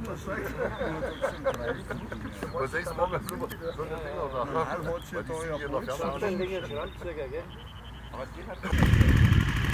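A man's voice talks over a loudspeaker outdoors.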